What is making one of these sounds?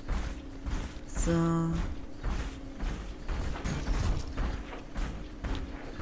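Heavy metal footsteps of a walking robot thud steadily on the ground.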